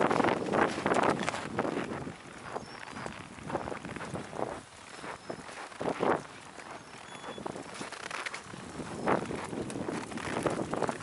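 Footsteps crunch steadily on packed snow.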